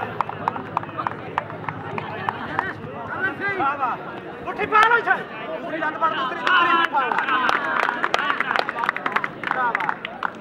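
A crowd of men cheers and shouts outdoors.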